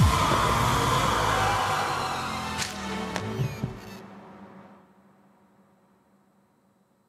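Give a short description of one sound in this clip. A loud harsh screech blares, then fades away.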